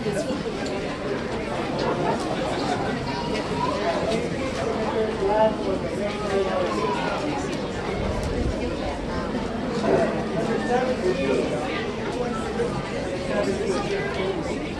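Nearby audience members murmur and chatter.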